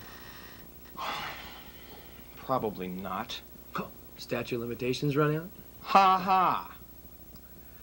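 A second man answers calmly, close to a microphone.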